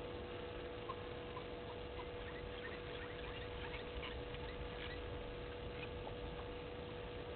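A small bird rustles through dry grass close by.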